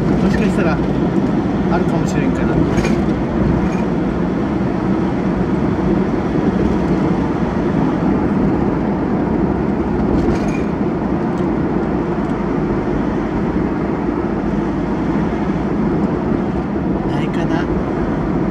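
A vehicle's engine hums steadily as it drives through a roofed roadway.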